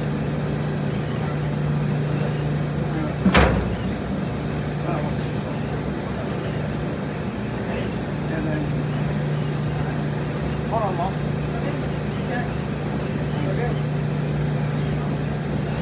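Clothes rustle as they are pushed into a front-loading washer.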